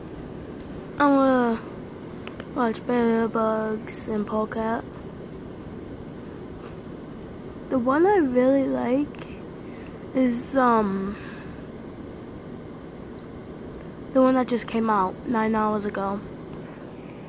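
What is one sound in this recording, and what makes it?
A child speaks close to a phone microphone in short bursts, with pauses.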